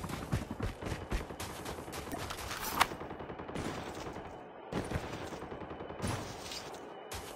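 A game character's footsteps crunch quickly over snow and dirt.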